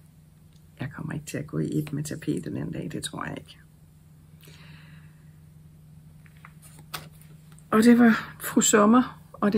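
A middle-aged woman talks calmly and close to a microphone.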